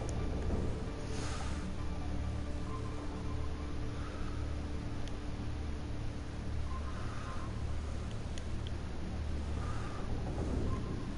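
A submarine's engine hums steadily underwater.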